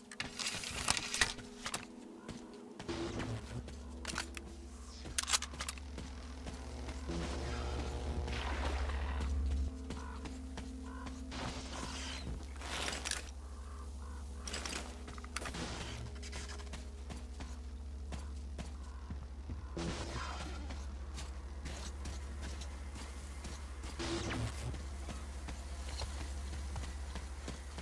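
Footsteps crunch on snow and gravel.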